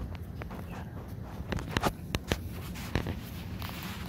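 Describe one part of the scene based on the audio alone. Papers rustle and tap on a table close by.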